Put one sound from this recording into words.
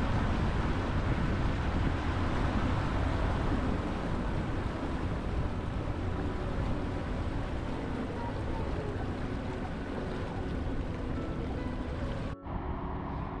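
Water churns and splashes behind a moving boat.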